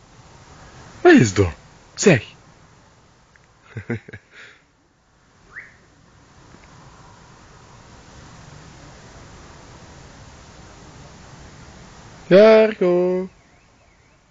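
A large dog barks loudly and deeply close by.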